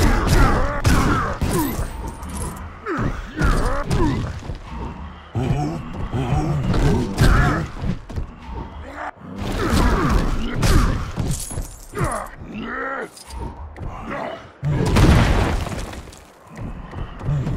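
Heavy blows land and objects smash and clatter apart.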